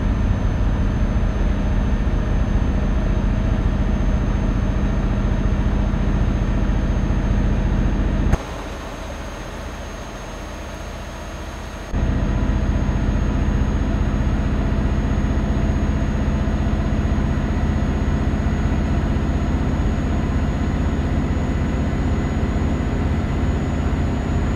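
A truck engine drones steadily, heard from inside the cab, and briefly grows quieter.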